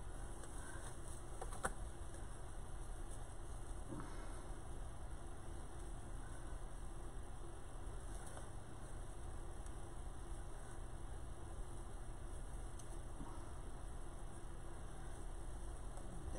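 Tinsel and netting rustle softly as hands fluff them.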